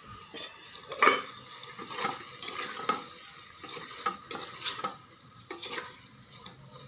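A metal spoon clinks and scrapes against a metal pot.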